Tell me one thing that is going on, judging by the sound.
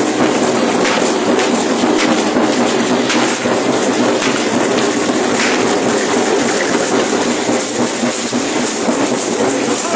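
Shell rattles on dancers' ankles shake and clatter rapidly.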